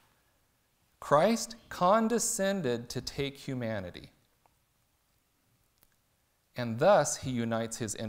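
A man reads aloud calmly into a nearby microphone, with pauses.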